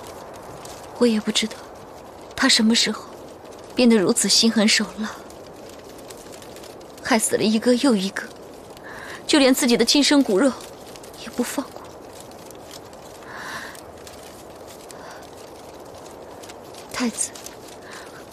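A young woman speaks close by, in a troubled, accusing tone.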